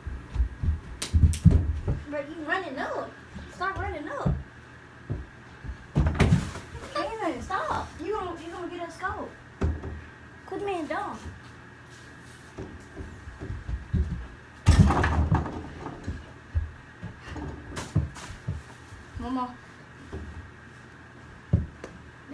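Bare feet thump on a carpeted floor.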